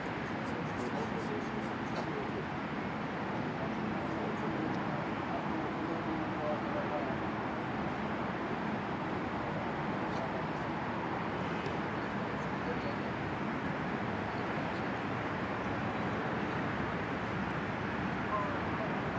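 Men's voices chatter and call out at a distance outdoors.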